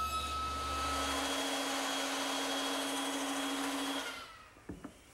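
A small power cutter whines as it cuts into wood.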